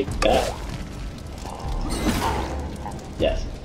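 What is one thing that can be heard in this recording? Magic spells zap and crackle in short bursts.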